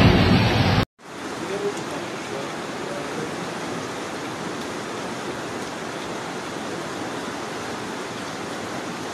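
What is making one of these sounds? A flooded river roars and rushes past, loud and steady.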